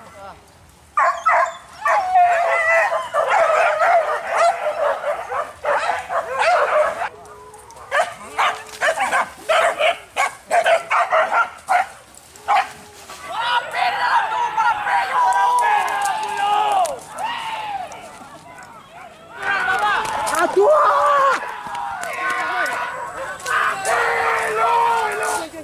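Dogs bark and yelp excitedly.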